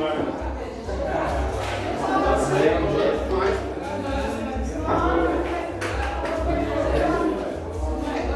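Men talk and call out nearby in a room with hard walls.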